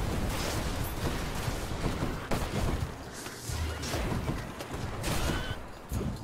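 Sword strikes clang and slash.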